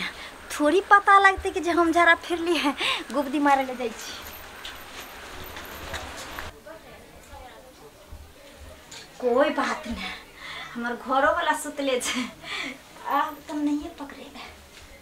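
A young woman sings a lilting melody close by.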